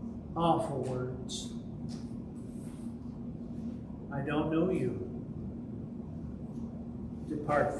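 An elderly man speaks calmly, in short phrases with pauses, into a microphone.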